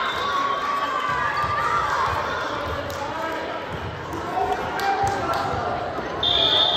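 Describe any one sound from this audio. A crowd chatters and calls out in a large echoing gym.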